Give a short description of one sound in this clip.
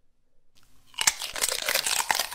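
A young man bites into a crisp cucumber with a loud crunch.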